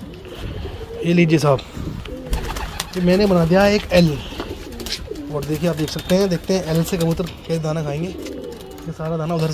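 Pigeons coo nearby.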